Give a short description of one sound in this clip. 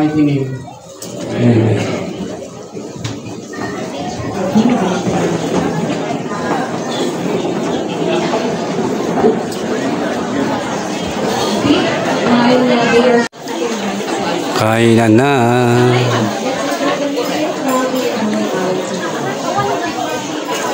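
A crowd of people chatters and talks all around.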